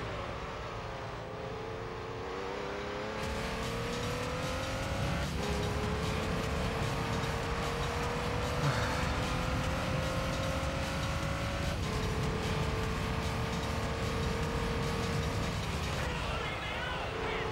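A racing car engine drones and climbs in pitch, dropping briefly at each gear change.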